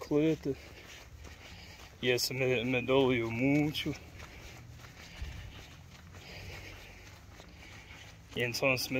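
A man speaks calmly and close up, in short bursts.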